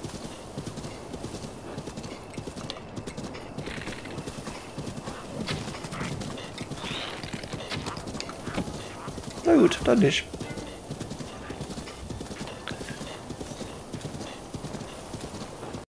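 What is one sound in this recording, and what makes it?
Horse hooves gallop steadily over grassy ground.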